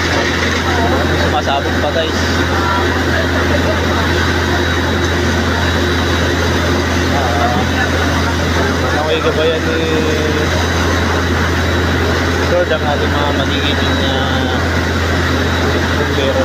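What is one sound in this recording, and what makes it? A crowd of men and women murmur and call out close by.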